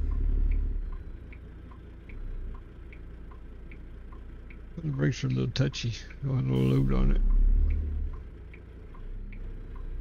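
A truck's turn signal ticks evenly.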